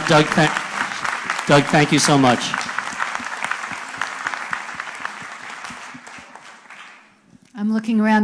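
People applaud and cheer in a large hall.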